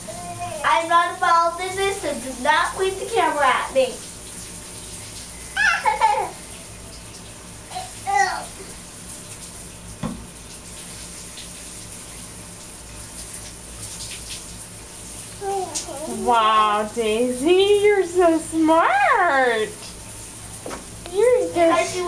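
A toddler babbles and squeals close by.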